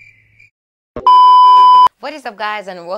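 A steady test tone beeps loudly.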